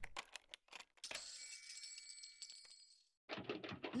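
A metal locker door swings open.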